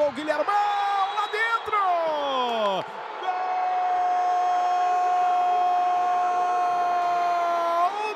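A large crowd cheers and roars in an echoing arena.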